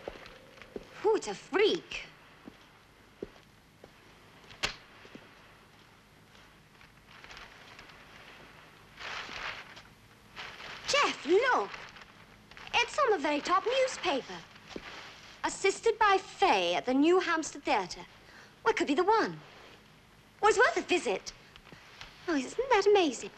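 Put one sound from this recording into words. A young woman speaks with alarm, close by.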